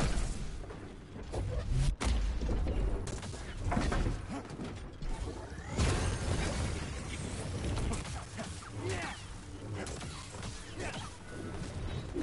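A laser sword hums and clashes against metal.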